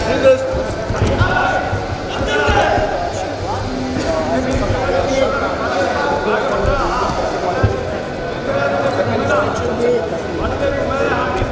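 Wrestlers scuffle and thump on a wrestling mat.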